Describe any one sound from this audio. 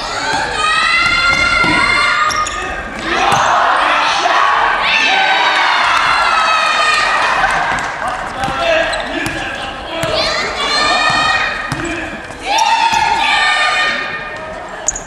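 Young men shout and call out loudly in a large echoing hall.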